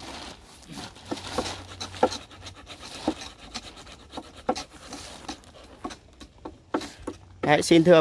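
Hand tools scrape and dig into soil.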